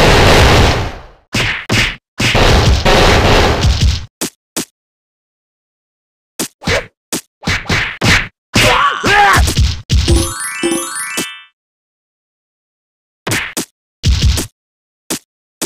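Punches and kicks land with quick, sharp thuds and whooshes.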